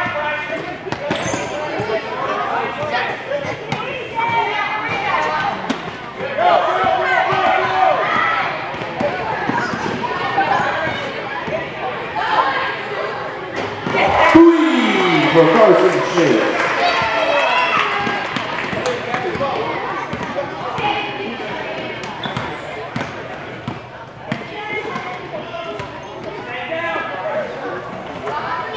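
Spectators cheer and shout in an echoing gym.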